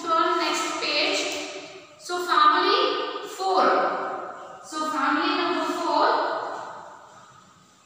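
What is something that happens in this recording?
A young woman reads aloud clearly in an echoing room.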